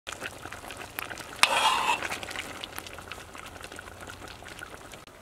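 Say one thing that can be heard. A stew bubbles and simmers in a pot.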